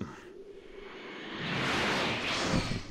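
A burst of energy roars and swells.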